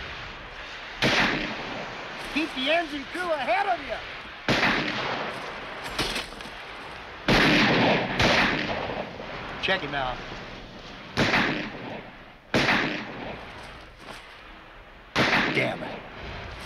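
Gunshots ring out loudly, one after another, with a short echo.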